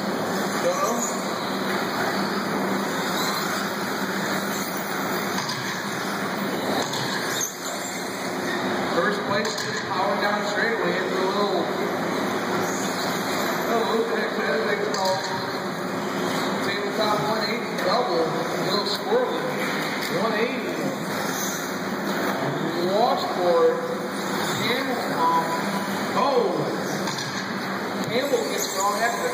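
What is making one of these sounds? Small electric motors whine and rev as toy cars race.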